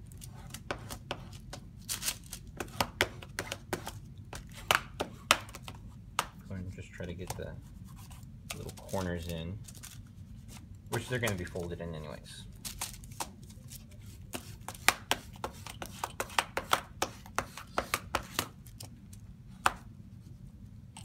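A plastic sheet crinkles and rustles as hands smooth it down.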